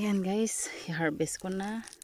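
Plant leaves rustle as a hand brushes through them.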